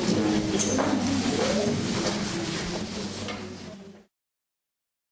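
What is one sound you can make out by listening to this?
An elderly man speaks to a room, his voice fading out.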